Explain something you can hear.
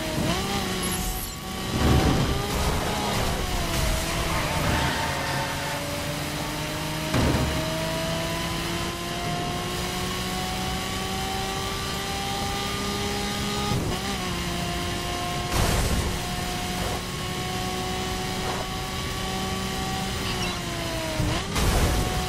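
A sports car engine roars at high revs, rising in pitch as it speeds up and dropping briefly at each gear change.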